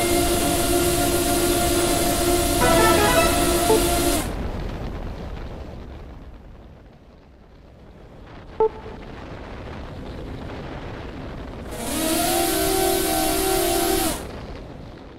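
Small drone motors whine loudly in bursts, rising and falling in pitch.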